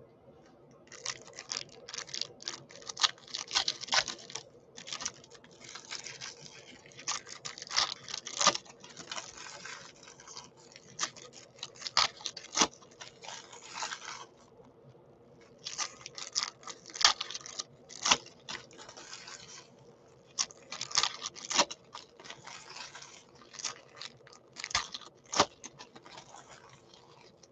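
A foil wrapper crinkles and rustles loudly up close.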